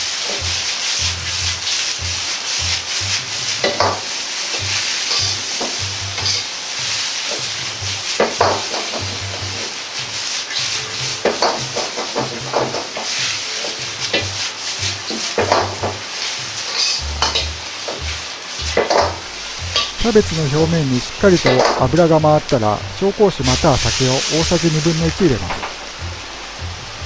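A metal ladle scrapes and clanks against a wok.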